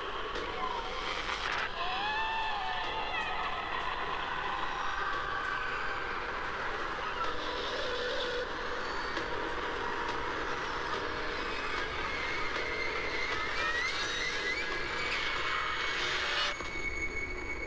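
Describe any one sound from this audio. A television plays an eerie, dramatic film soundtrack through its speakers.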